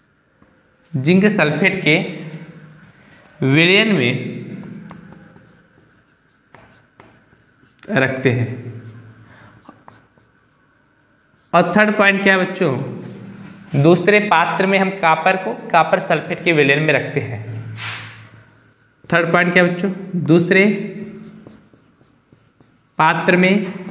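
A man speaks with animation, close by, in a room with some echo.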